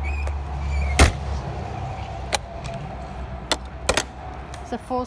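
A metal door latch clanks and clicks open.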